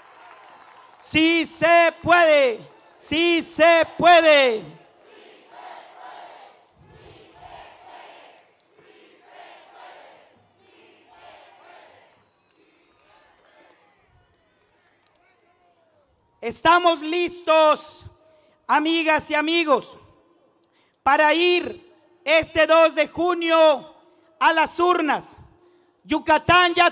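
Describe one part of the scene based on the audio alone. A man speaks loudly and with emotion into a microphone over loudspeakers.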